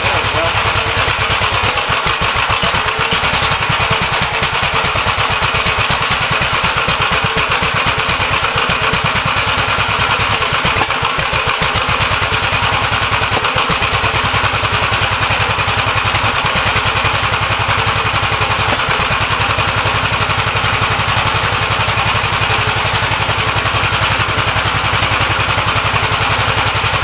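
A small petrol engine runs loudly and steadily close by.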